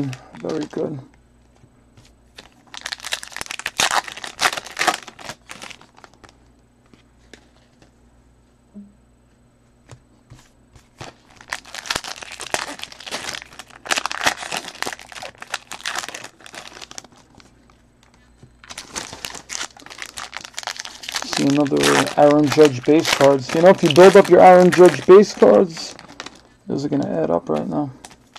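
Foil wrappers crinkle and rustle in bursts as card packs are torn open.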